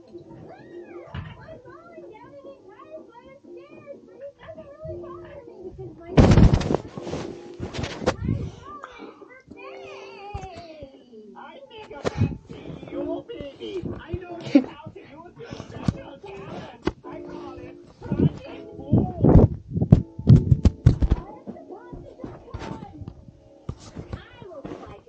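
A television plays music and cartoon voices nearby.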